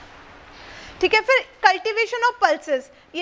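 A young woman reads aloud clearly into a microphone.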